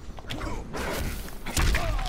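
A burst of fire whooshes.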